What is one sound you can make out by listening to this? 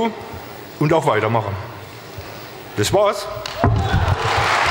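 A middle-aged man speaks with animation through a microphone in a large echoing hall.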